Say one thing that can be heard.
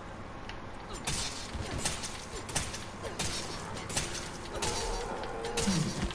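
A knife stabs into a body.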